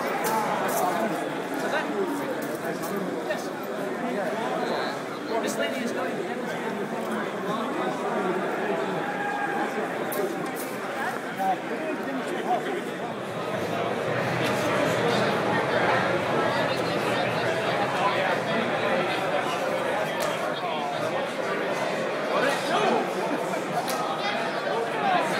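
A crowd chatters all around in a large, busy hall.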